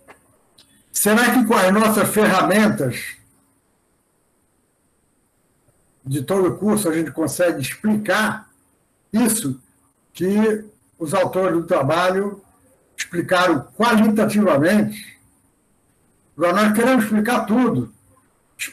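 A middle-aged man speaks calmly over an online call, explaining.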